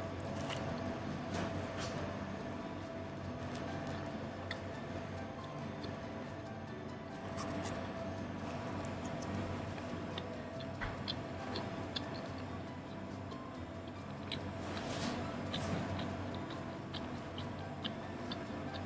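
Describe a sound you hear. A man chews food noisily, with wet smacking and crunching sounds close by.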